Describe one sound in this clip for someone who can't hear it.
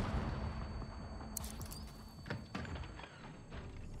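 Double doors bang open.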